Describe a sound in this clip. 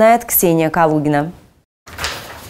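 A woman speaks clearly and calmly into a microphone.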